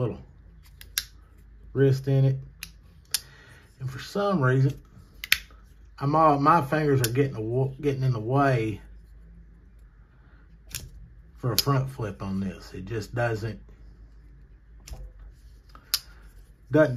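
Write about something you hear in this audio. A folding knife blade snaps open and shut with sharp clicks.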